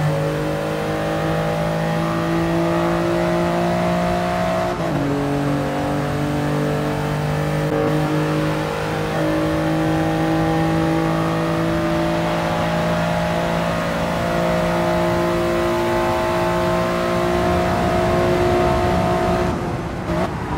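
A racing car engine roars steadily at high revs, with a brief dip as it shifts up a gear.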